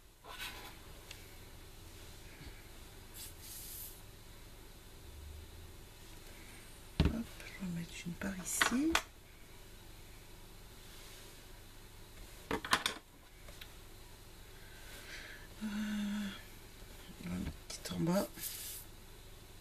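Paper rustles as hands handle a card.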